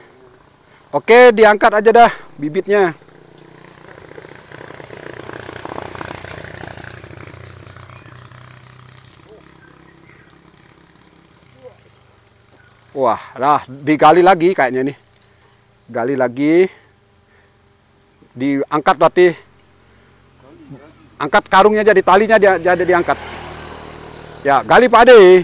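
Young men talk casually nearby outdoors.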